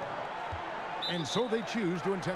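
A referee's whistle blows once, sharply.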